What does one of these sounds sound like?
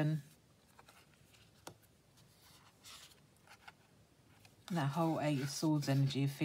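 Playing cards slide and tap softly on a cloth surface.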